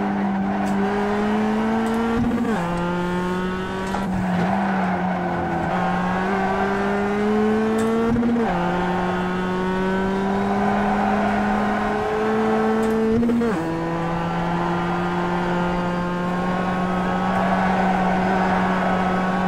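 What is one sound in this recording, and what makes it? A racing car engine revs higher and drops sharply at each gear change, heard through loudspeakers.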